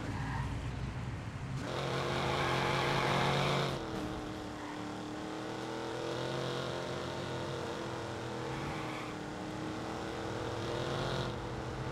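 Rain patters steadily on the road.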